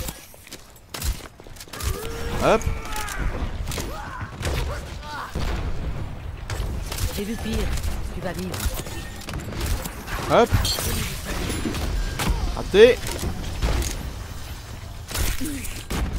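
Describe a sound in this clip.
A gun fires rapid bursts of laser-like shots.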